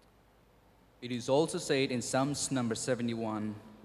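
A young man speaks calmly into a microphone, heard through loudspeakers in a large hall.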